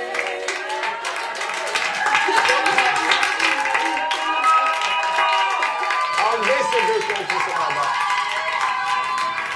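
A small group claps loudly close by.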